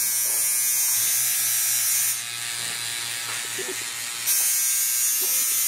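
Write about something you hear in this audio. A tattoo machine buzzes steadily up close.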